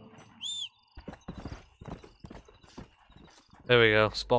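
Horse hooves thud on dirt as a horse trots away.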